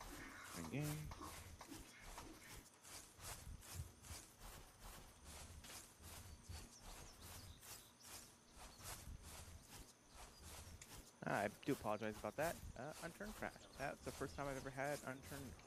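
Footsteps swish quickly through grass.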